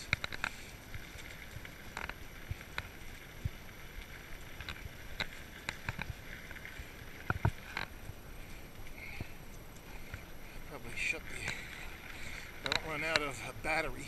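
A bicycle frame clicks and clanks over bumps.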